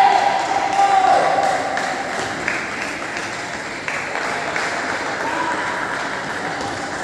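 Table tennis balls click on paddles and tables in a large echoing hall.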